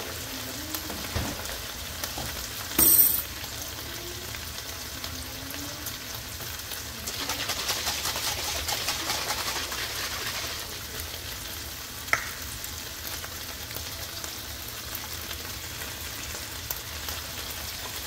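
Meat sizzles and crackles in a hot pan.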